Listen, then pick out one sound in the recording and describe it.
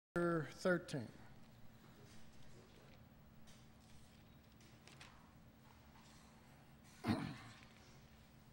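An elderly man speaks briefly through a microphone in an echoing hall.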